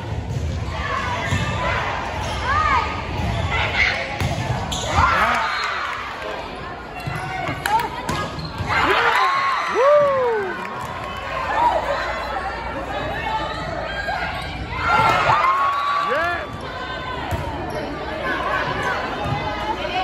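Sneakers squeak sharply on a gym floor in an echoing hall.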